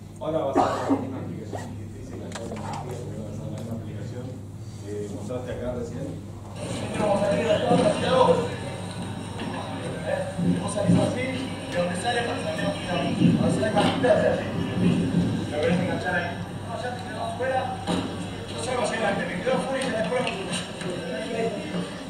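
A man speaks to an audience through a microphone in a large room.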